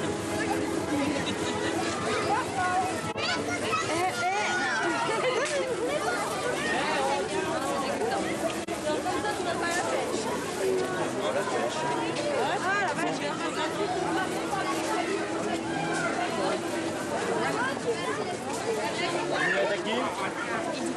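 A crowd of children and adults chatters and calls out outdoors.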